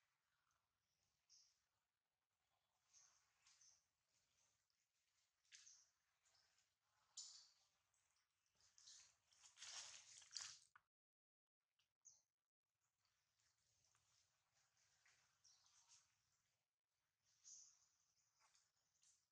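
A baby monkey squeaks and squeals close by.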